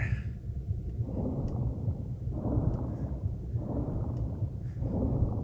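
Bubbles gurgle underwater in slow bursts.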